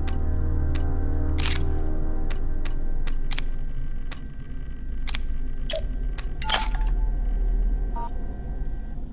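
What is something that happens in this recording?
Short electronic clicks sound one after another.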